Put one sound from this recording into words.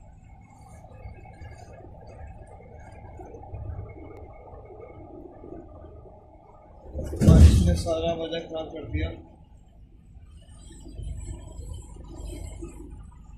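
Water churns and rumbles, heard muffled from underwater.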